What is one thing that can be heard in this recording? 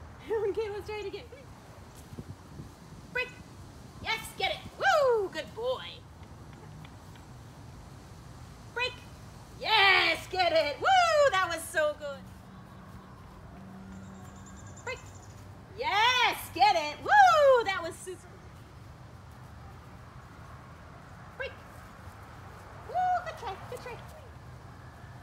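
A young woman talks to a dog in a high, excited voice.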